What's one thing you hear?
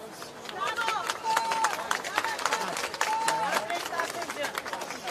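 A crowd of people talk and call out nearby.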